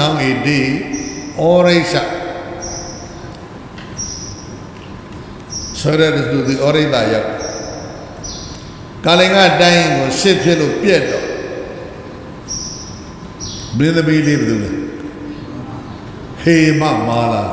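An elderly man speaks slowly and calmly into a microphone, in bursts with pauses.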